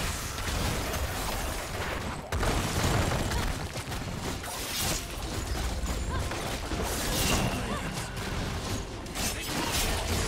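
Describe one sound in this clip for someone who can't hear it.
Video game combat effects clash, zap and thud.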